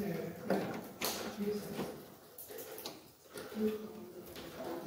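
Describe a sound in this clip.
Plastic parts click and snap as a cover is pressed into place.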